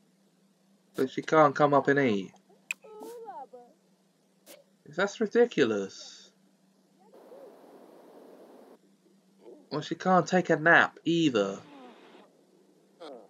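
A young man speaks casually into a close microphone, in short bursts.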